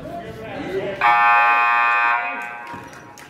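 A scoreboard buzzer sounds in a large echoing gym.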